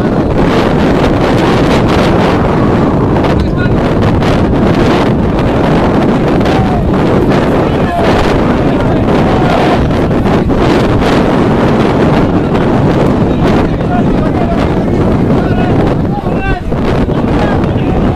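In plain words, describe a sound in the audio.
Wind blows steadily across an open outdoor field.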